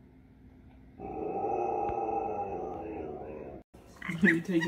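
A husky howls loudly in a long, wavering cry.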